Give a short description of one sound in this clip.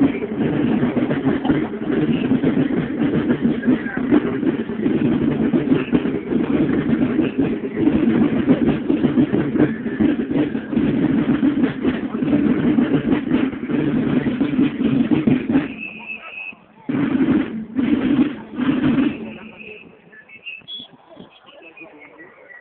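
Many boots tramp on grass as a column marches past.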